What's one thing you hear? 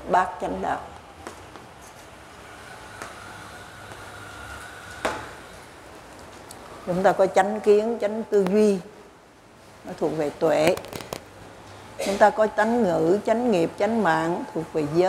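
An elderly woman speaks slowly and calmly into a close microphone, with pauses.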